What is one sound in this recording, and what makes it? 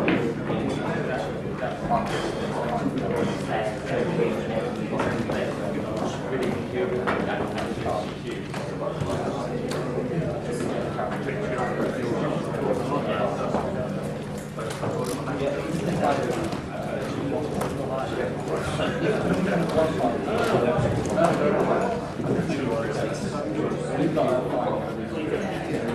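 A small crowd murmurs and chatters quietly in the background.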